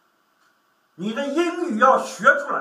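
An older man speaks in a lecturing tone, close by.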